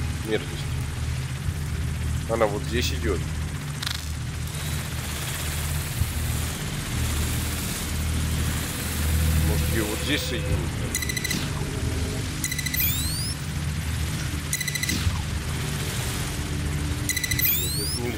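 A small drone hums steadily as it flies.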